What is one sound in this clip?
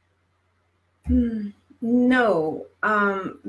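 A woman speaks with animation into a headset microphone, heard through an online call.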